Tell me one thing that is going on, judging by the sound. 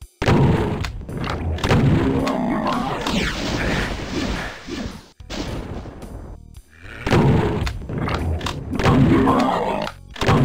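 A shotgun fires loud booming blasts.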